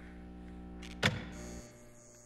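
A fuse clunks loudly into a metal box.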